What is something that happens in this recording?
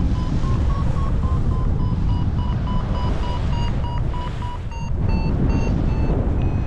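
Strong wind rushes and buffets steadily.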